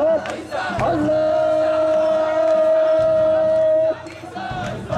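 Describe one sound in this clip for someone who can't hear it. A crowd of men shouts a long held call.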